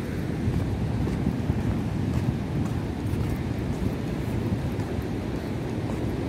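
Sea waves wash against rocks nearby.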